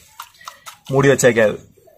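Hands squish and mix wet food.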